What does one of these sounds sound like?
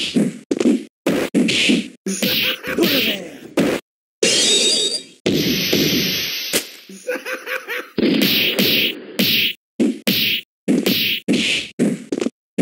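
Punches and blows land with sharp smacks.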